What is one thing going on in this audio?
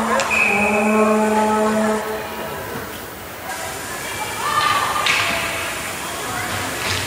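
Ice skates scrape and glide across the ice in a large echoing arena.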